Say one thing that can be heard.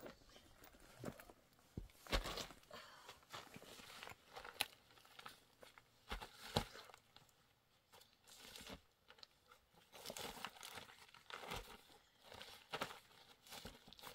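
Stones knock and scrape against each other as they are moved by hand.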